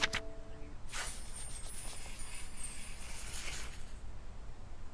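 Paper pages rustle as a book's pages turn.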